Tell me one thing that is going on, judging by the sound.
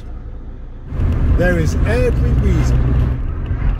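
A car engine hums as the car drives along a road.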